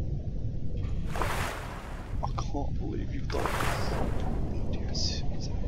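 Water splashes loudly as a whale breaks the surface.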